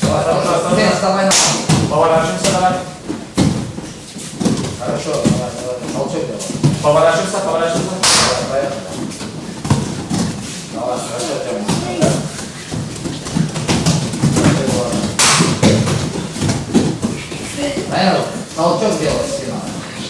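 Bodies thud onto a padded mat.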